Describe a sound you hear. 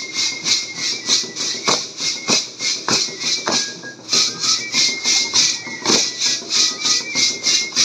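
Dancers' feet stamp and shuffle on pavement in a steady rhythm.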